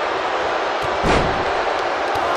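A wrestler's body slams heavily onto a ring mat with a loud thud.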